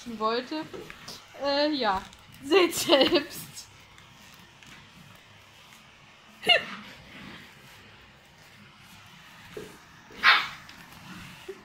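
Small dogs bark and yap excitedly close by.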